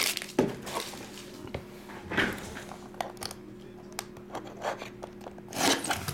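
A cardboard box slides and scrapes against another box.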